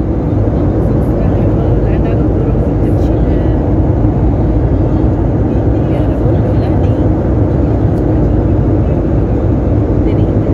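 A steady low roar of jet engines drones on.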